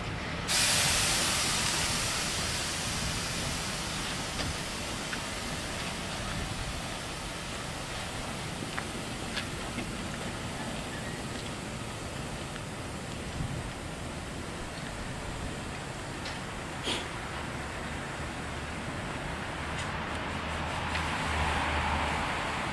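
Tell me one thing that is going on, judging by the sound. A steam locomotive chuffs with a slow, deep rumble.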